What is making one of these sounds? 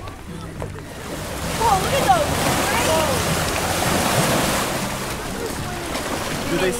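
Small waves splash and wash against a shore.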